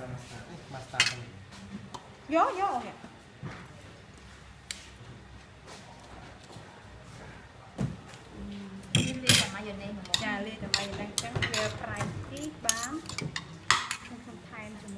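Metal forks clink and scrape against a ceramic bowl.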